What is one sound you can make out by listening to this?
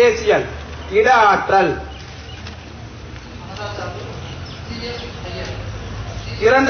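A man speaks forcefully into a microphone, heard through a loudspeaker outdoors.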